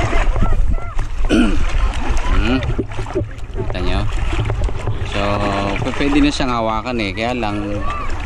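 A large fish splashes at the water's surface close by.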